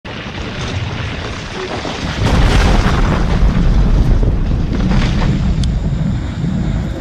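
Explosions boom and rumble in deep, rolling bursts.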